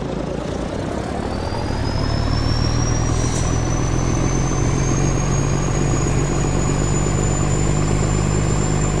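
A truck engine revs up and stays at a higher pitch.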